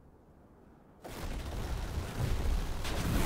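Guns fire in rapid bursts during a battle.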